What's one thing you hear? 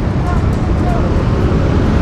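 A motorcycle engine hums as it rides past.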